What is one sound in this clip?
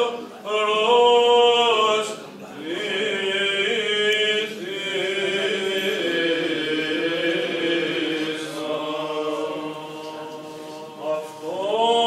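Men chant together in a slow, sustained melody, echoing in a resonant hall.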